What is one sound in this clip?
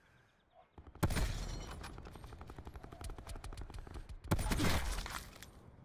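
A rifle fires loud single shots with a booming echo.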